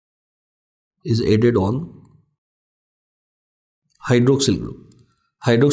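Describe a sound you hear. A man speaks calmly and clearly into a close microphone, in short phrases with pauses.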